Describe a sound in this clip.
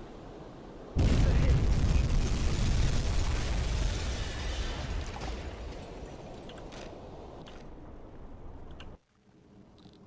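A heavy explosion booms and rumbles slowly away.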